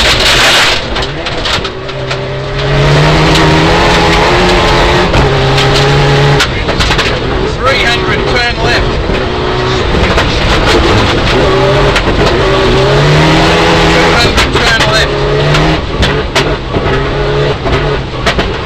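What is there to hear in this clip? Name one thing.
A car engine roars and revs hard up and down, heard from inside the car.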